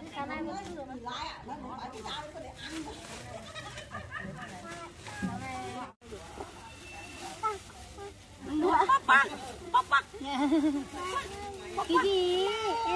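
Several women chat and laugh together nearby.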